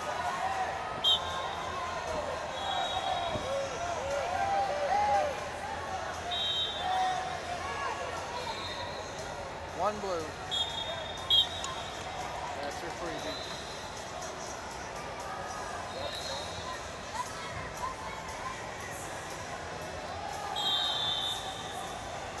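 Shoes squeak sharply on a wrestling mat.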